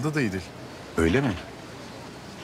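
A middle-aged man asks a short question in a deep voice.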